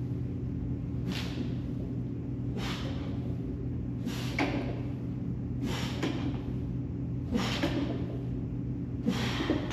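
A man exhales sharply with each squat.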